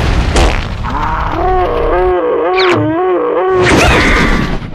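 A high, cartoonish voice screams in a loud, wavering wail.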